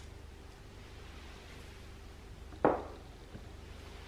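A ceramic bowl clinks down on a hard floor.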